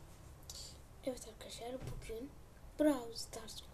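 A young boy speaks close to a microphone.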